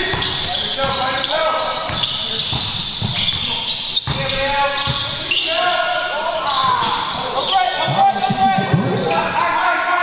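A basketball bounces on the floor with dull thuds.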